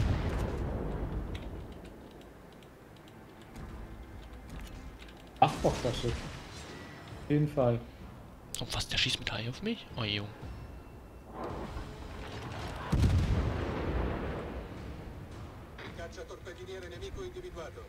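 Shells explode in thudding blasts.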